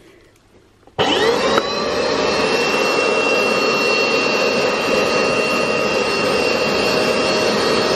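A carpet cleaning machine starts up and runs with a loud, steady suction whine.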